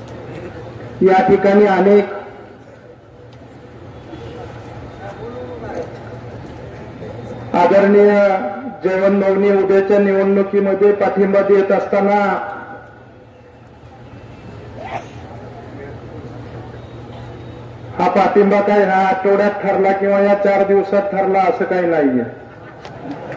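A man gives a speech loudly into a microphone, heard through loudspeakers outdoors, with long drawn-out shouted phrases.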